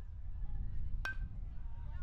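A metal bat strikes a baseball with a sharp ping.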